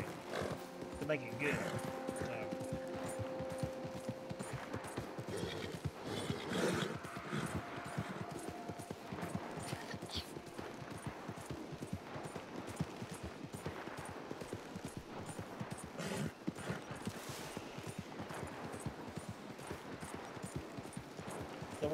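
A horse gallops with rapid, heavy hoofbeats.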